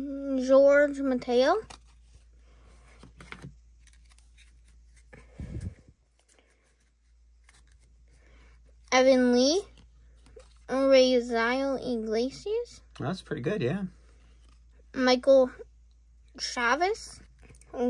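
Trading cards softly rustle and flick as they are sorted by hand.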